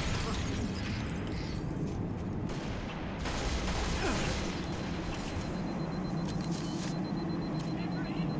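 A low, steady rumble of game ambience plays throughout.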